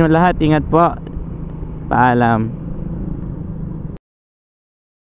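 A motor scooter engine hums steadily.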